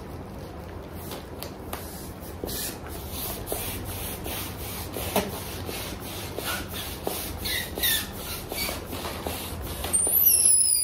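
A hand pump pushes air in quick, rhythmic hissing strokes.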